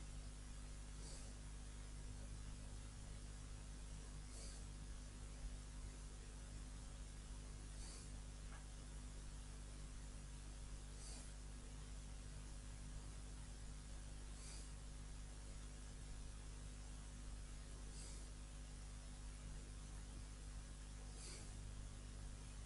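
A man breathes slowly and softly close to a microphone.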